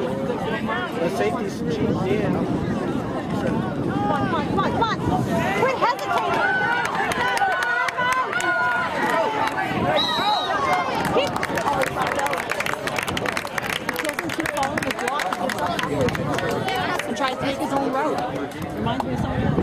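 A crowd of young players and spectators shouts and cheers outdoors.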